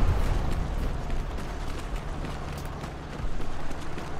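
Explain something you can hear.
Footsteps run quickly over a dirt path.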